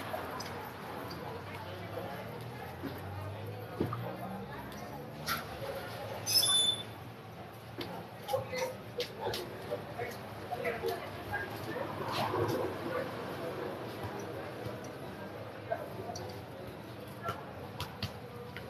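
A football bounces on pavement.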